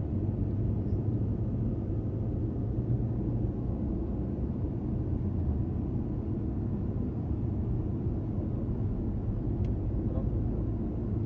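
Tyres roll over the road with a low rumble.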